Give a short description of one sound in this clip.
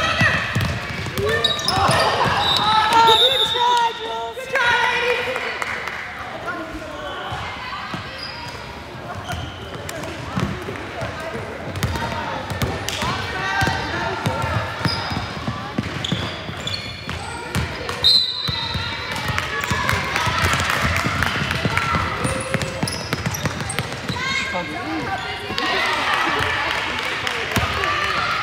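Sneakers squeak sharply on a hard court.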